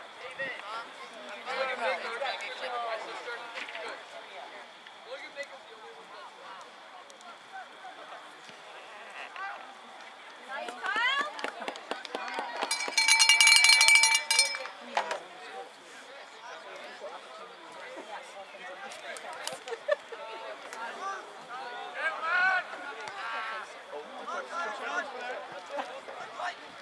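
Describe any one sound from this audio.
Young men shout and call out across an open field.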